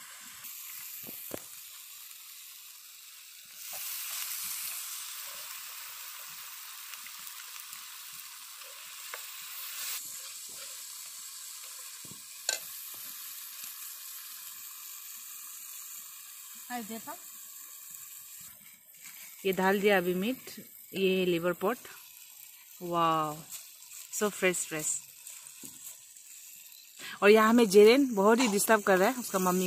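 Oil sizzles and crackles in a pan.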